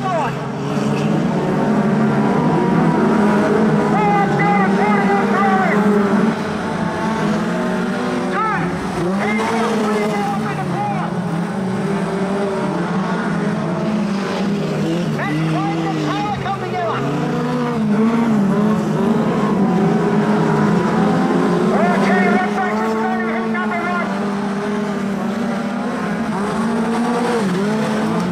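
Car engines roar and rev up and down.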